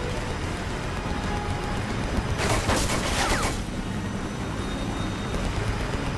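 Footsteps clang on the rungs of a metal ladder.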